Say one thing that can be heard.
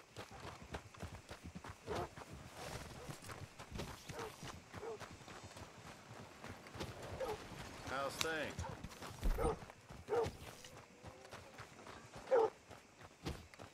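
Boots thud quickly on a dirt road as a man runs.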